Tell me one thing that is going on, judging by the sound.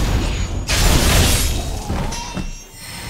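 A blade slashes with a loud wet splatter.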